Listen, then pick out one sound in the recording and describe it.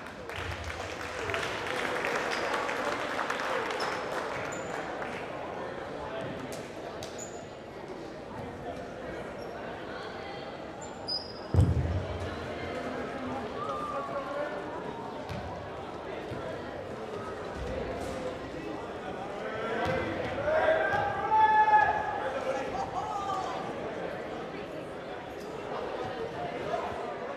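Many people talk and chatter in a large echoing gym.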